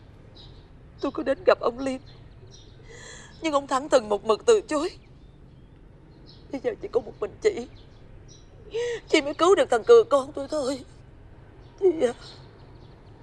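A middle-aged woman pleads emotionally, close by.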